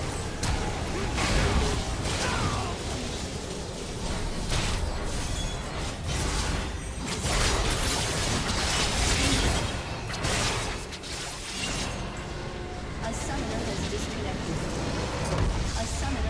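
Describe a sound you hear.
Video game spell and weapon effects clash and burst during a fight.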